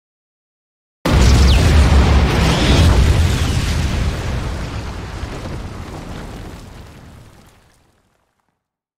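A huge explosion booms with a sudden blast and a long rumbling fade.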